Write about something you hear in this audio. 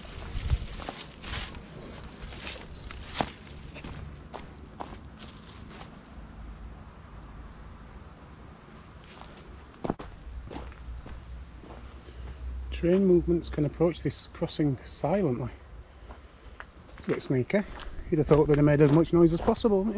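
Footsteps crunch on a gravel path outdoors.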